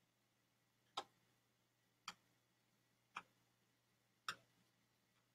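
A small device clicks a few times.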